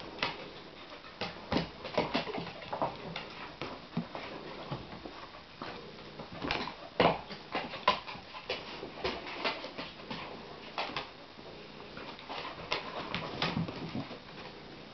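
Large dogs' claws click and scrape on a wooden floor.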